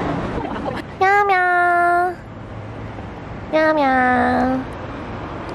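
A cat meows loudly.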